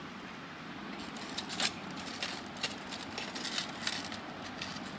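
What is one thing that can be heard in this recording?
Flatbread tears with soft crackling.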